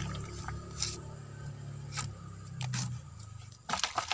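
A plastic cap is screwed onto a bottle.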